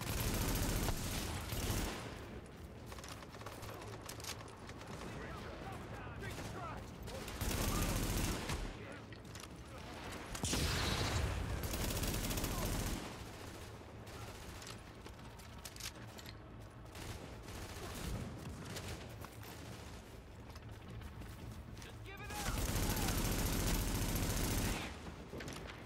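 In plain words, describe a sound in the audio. Rapid gunfire crackles in loud bursts.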